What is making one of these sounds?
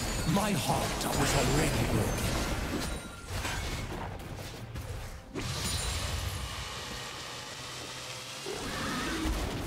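Fantasy game combat sound effects clash and burst.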